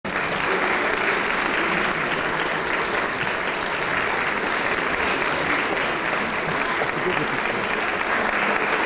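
An audience claps steadily and loudly in a large hall.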